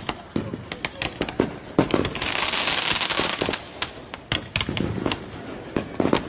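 Fireworks fizz and hiss as they shoot upward.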